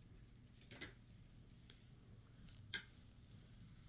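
A plastic bottle clicks as it is handled.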